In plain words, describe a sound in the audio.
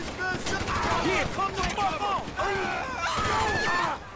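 Gunshots ring out nearby.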